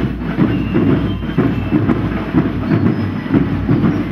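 A drum beats steadily outdoors.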